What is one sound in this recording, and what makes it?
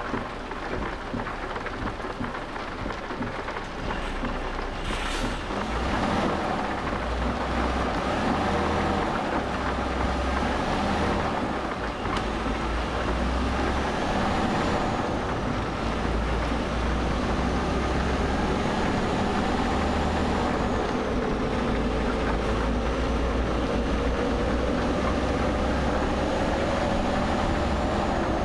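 Tyres hum on a road.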